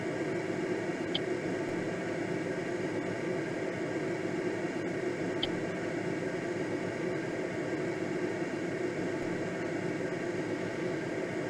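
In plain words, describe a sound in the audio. Air rushes steadily past a gliding aircraft's cockpit.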